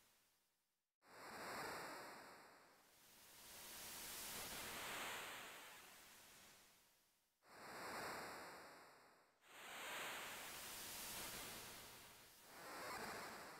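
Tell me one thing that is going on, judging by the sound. Ocean waves wash in and out in slow swells.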